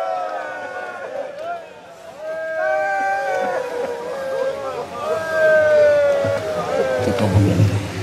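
A man chants a mournful melody through a loudspeaker.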